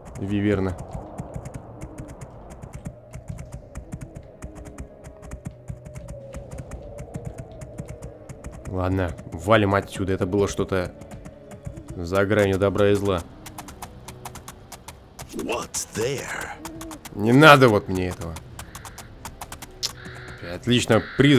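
A horse's hooves clop steadily on the ground.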